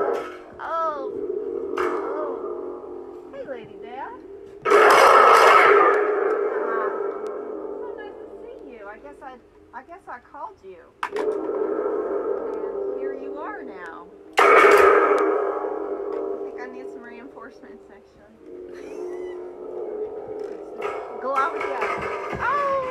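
A woman speaks with animation outdoors, close by.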